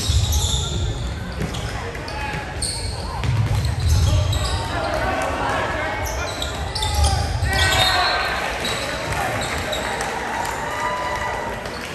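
Young men shout and call out to each other in a large echoing gym.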